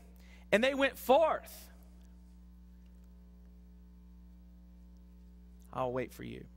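A man speaks with emphasis into a microphone in a large, echoing room.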